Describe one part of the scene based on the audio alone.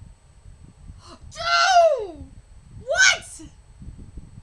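A young woman squeals with excitement in high-pitched bursts.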